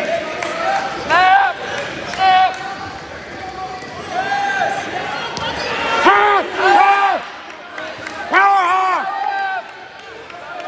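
Spectators shout loudly in bursts.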